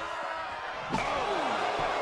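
A heavy body slams down with a thud.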